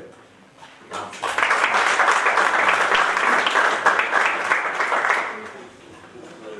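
A group of people applaud.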